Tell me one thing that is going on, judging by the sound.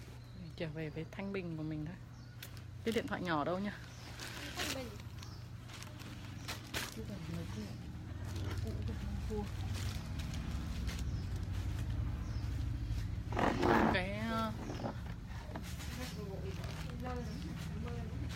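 A young woman talks close by, with animation.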